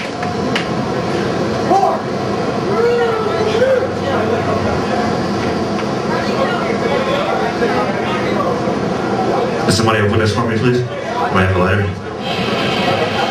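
A metal band plays loud, distorted music live in a reverberant hall.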